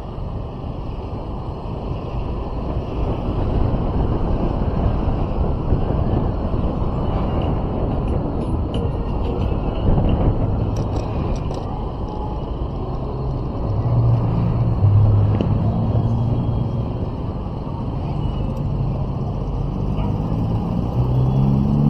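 Wind rumbles loudly against the microphone while riding.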